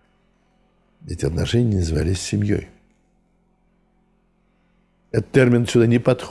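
An elderly man speaks calmly and warmly, close to a microphone.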